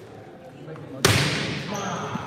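A volleyball is struck with a sharp smack in an echoing gym.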